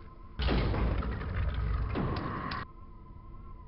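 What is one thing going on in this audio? A shotgun fires with loud booming blasts.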